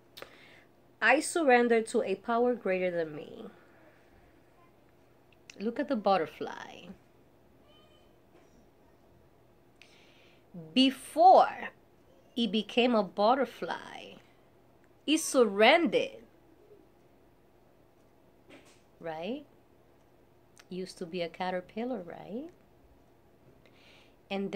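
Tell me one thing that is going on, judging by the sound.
A woman speaks calmly, close by, in short phrases with pauses.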